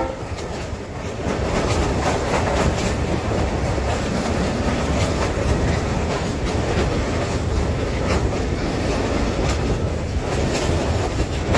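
A train's wheels clatter on the rails.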